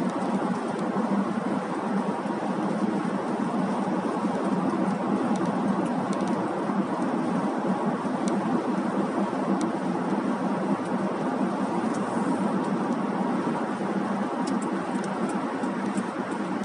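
Tyres roar steadily on a road, heard from inside a moving car.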